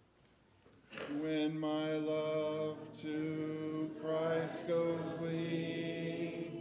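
A man sings a hymn through a microphone.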